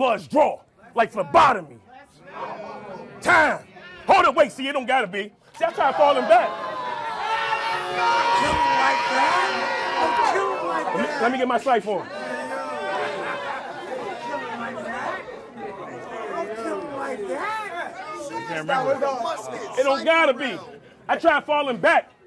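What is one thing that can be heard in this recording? A man raps loudly and forcefully, close by.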